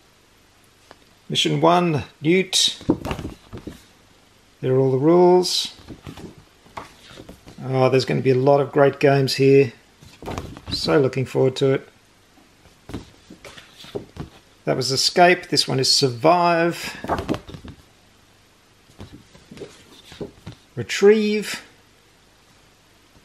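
Stiff paper sheets rustle and flap as they are turned over in the hands.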